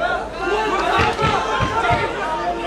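Fists thud against a body in quick blows.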